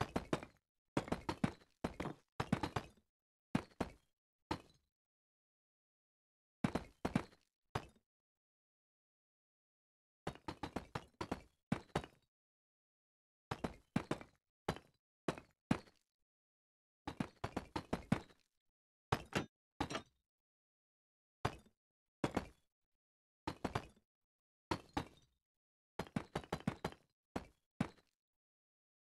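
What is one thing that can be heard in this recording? Stone blocks clack as they are placed and broken, in short bursts.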